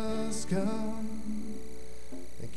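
A band holds a final sung note as a song ends.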